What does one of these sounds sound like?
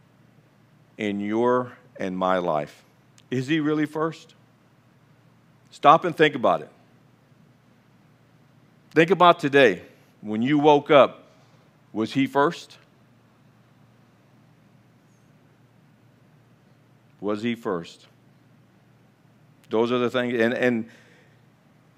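An elderly man speaks calmly through a microphone, pausing often.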